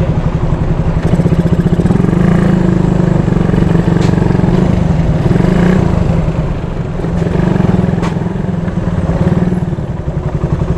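A motorcycle engine revs up as the motorcycle rides off.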